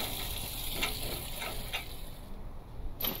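Water gushes and splashes from a hydrant.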